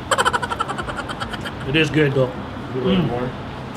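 A young woman slurps and chews food noisily.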